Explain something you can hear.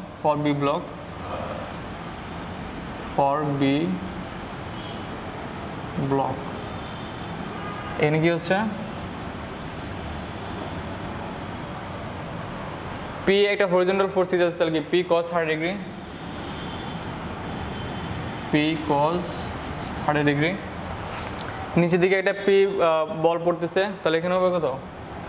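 A young man speaks calmly and clearly nearby, in short bursts with pauses.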